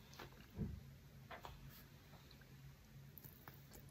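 A man chews noodles wetly close to a microphone.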